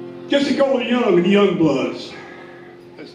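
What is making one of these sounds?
An elderly man sings into a microphone.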